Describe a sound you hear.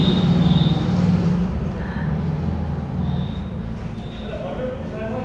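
An elderly woman speaks in a frail, slow voice close by.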